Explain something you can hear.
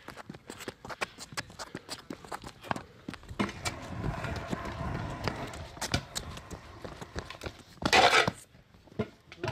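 Scooter wheels roll and rattle over rough pavement.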